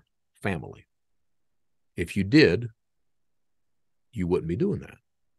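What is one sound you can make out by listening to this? A middle-aged man speaks calmly and closely into a microphone, in short phrases.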